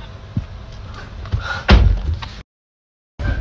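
A young man laughs close by.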